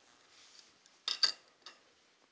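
A metal tool clinks as it is set down and picked up.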